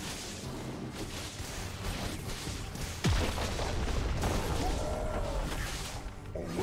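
Magic blasts and weapon strikes crackle and thud in a hectic fight.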